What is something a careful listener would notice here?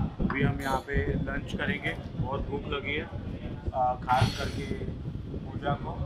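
A young man talks close by, casually.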